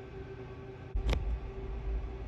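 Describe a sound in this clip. A softball pops into a catcher's mitt.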